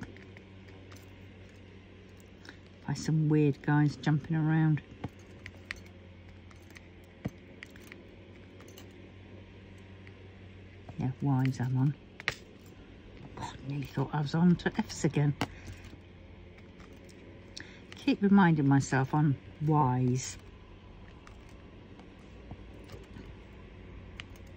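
A pen tool taps small plastic beads with faint clicks.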